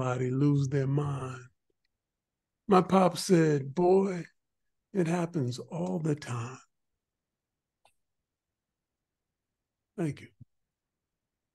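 An older man speaks expressively over an online call, in short bursts with pauses.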